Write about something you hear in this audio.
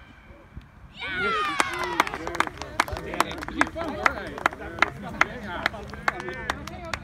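Young players shout and cheer in the open air.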